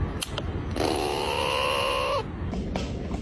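A squirrel squeals loudly.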